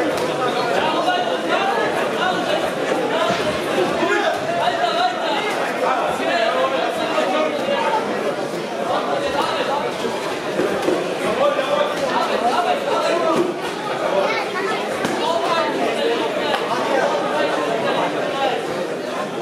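A crowd of spectators shouts and cheers continuously, echoing in a large hall.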